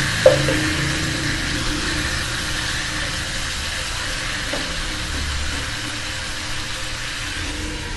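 A wooden spatula scrapes and pushes food around a pan.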